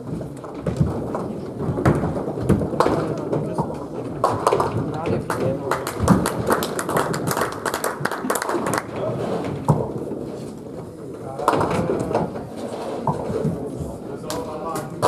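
Bowling balls roll down lanes with a low rumble in an echoing hall.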